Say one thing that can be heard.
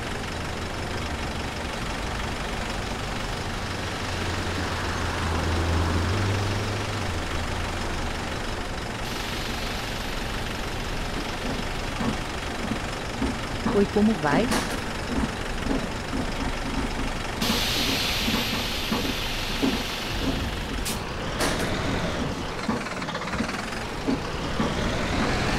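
A diesel city bus engine idles.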